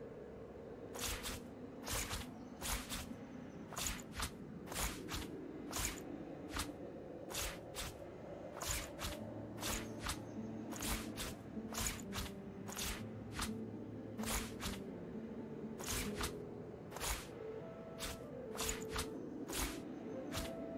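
Short, crisp interface clicks sound over and over as items are moved about.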